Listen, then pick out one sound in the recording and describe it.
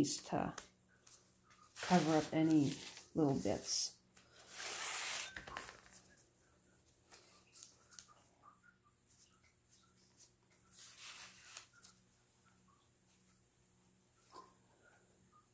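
A damp sponge rubs softly against clay.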